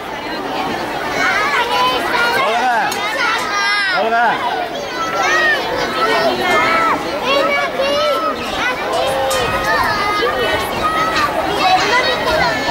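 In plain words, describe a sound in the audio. A crowd of young children sings and shouts loudly nearby.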